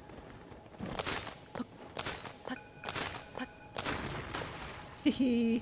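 Ice shatters and crackles loudly.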